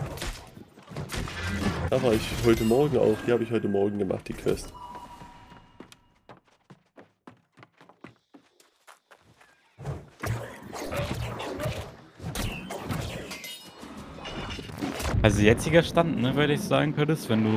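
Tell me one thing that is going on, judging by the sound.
Magic blasts crackle and strike during a fight.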